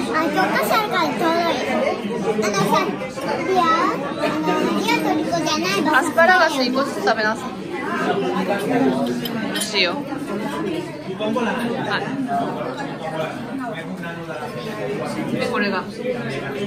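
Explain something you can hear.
A young girl talks cheerfully close by.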